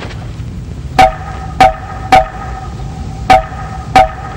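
A man beats a hollow wooden slit drum with a stick, sending out loud, ringing knocks at an uneven pace.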